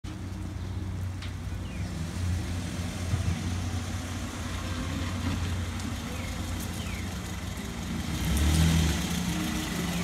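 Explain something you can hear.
A car engine hums as a car pulls slowly into a driveway.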